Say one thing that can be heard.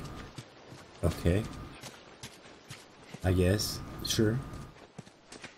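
A man speaks with animation, close to a microphone.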